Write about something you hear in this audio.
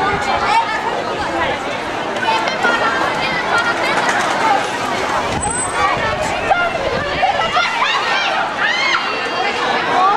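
Children shout and squeal with high voices.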